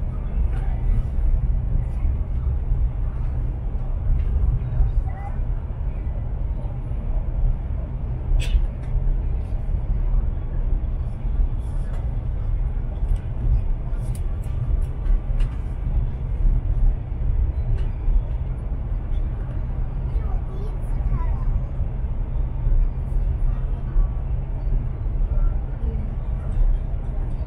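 Wheels click and knock now and then over rail joints.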